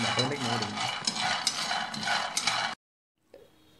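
Peanuts rattle and scrape in a hot pan as they are stirred.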